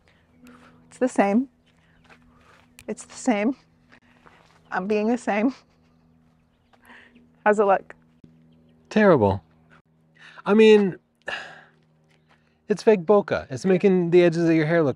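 A young woman speaks calmly and clearly into a close microphone, pausing between phrases.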